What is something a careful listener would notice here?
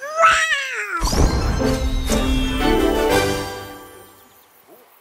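A cheerful, bright jingle plays and rings out.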